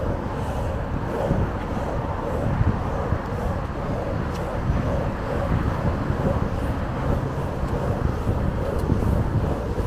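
Skateboard wheels roll and rumble steadily on pavement.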